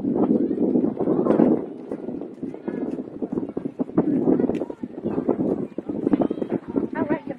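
Children talk nearby.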